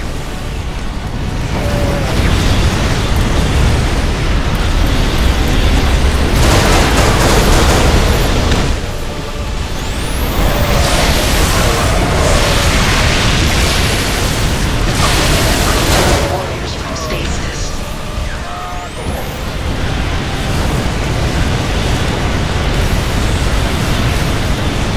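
Energy weapons zap and crackle rapidly.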